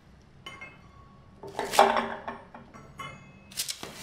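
Metal parts clink against each other.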